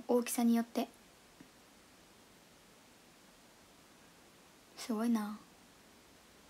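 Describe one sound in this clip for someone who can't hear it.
A young woman speaks briefly in short bursts, close to a microphone.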